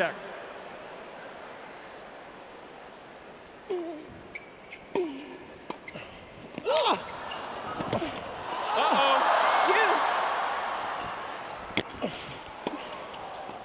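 A tennis ball is struck sharply by a racket.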